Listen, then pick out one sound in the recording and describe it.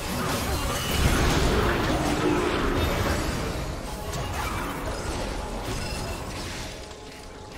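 Video game spell effects whoosh and crackle in a fast fight.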